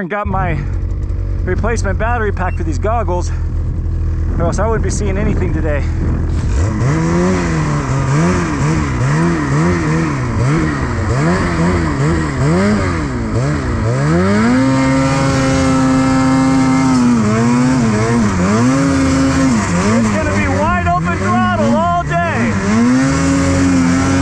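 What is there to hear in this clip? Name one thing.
A snowmobile engine revs up and down, loud and close.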